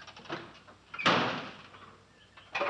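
A truck door slams shut.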